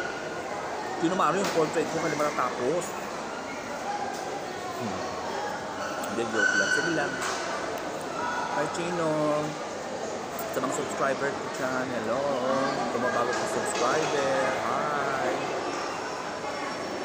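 A middle-aged woman talks to a close microphone with animation.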